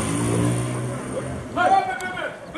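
A motorcycle engine idles close by.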